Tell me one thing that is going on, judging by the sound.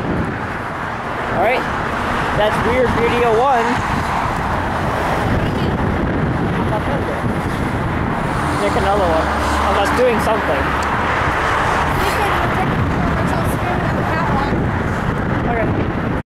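Highway traffic roars steadily below, outdoors.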